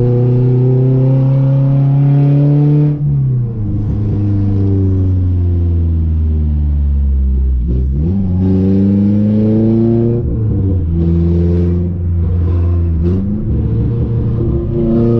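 A car engine revs loudly, rising and falling in pitch as the gears shift.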